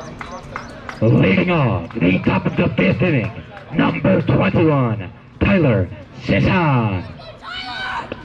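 A man calls out loudly close by.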